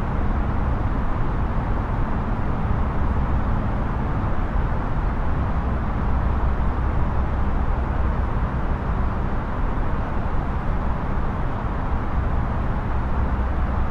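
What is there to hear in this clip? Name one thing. Jet engines roar with a steady low rumble.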